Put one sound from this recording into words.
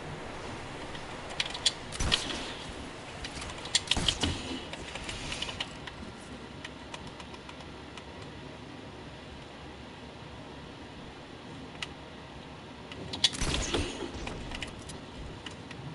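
Wooden walls snap into place with quick clacks.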